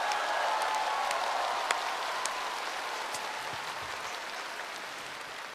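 An audience applauds and cheers in a large hall, slowly fading.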